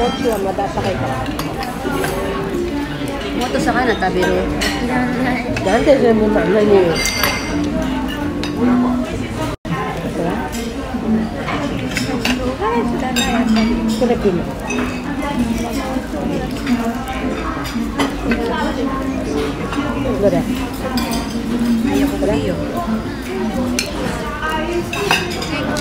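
A fork and knife clink against a plate.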